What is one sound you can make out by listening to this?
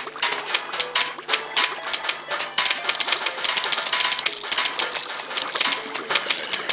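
Cartoon plants fire rapid popping shots.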